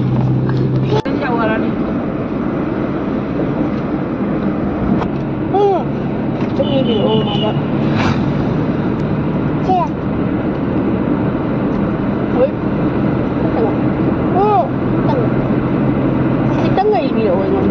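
A young child talks nearby in short bursts.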